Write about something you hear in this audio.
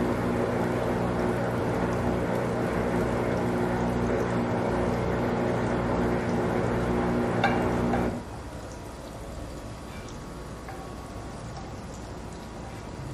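A wooden spoon stirs a thick sauce in a metal pot.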